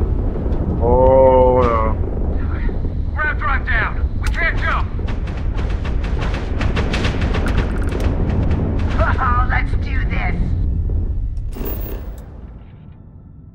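A spaceship engine rumbles low and steady, then fades away.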